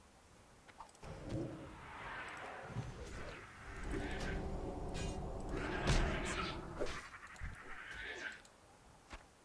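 Weapons clash and strike in a brief fight.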